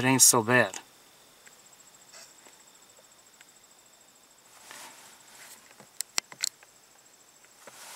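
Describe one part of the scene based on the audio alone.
A bird preens its feathers with soft rustling.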